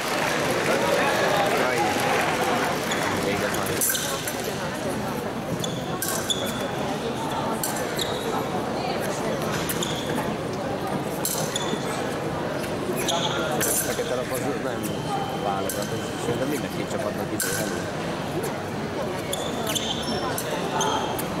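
Fencers' feet stamp and shuffle on a metal strip.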